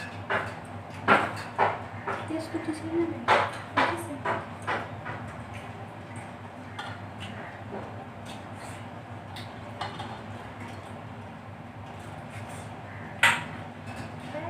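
A spoon clinks against a metal bowl.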